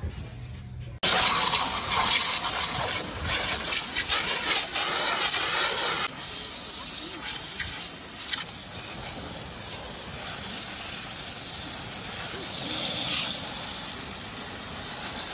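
A pressure washer sprays a hissing jet of water against a motorcycle.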